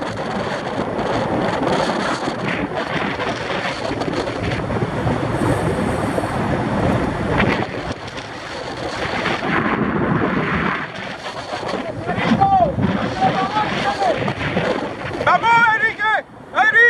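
Wind rushes loudly past outdoors.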